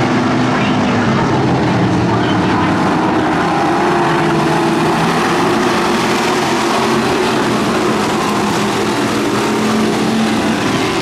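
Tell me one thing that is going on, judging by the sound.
A pack of race car engines roars loudly and revs as the cars pass.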